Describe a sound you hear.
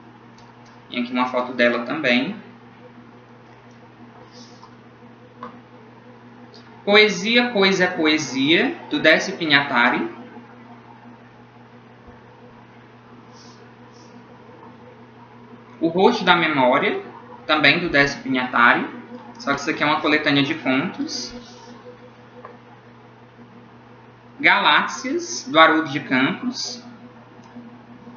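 A young man speaks calmly and close to the microphone, in short bursts with pauses.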